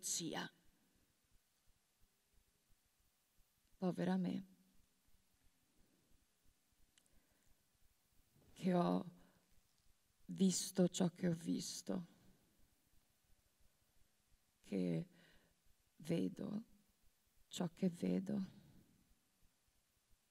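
A woman speaks slowly into a microphone, with long pauses.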